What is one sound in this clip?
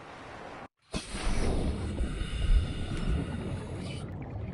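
Water rumbles and bubbles deeply underwater.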